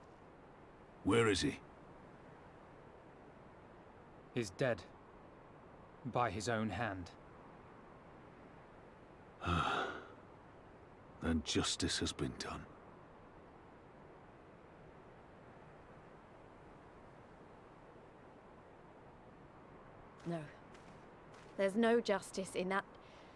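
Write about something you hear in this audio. A young man talks in short bursts into a close microphone.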